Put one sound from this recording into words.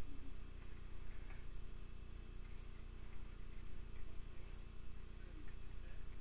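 Cards slide softly on a table.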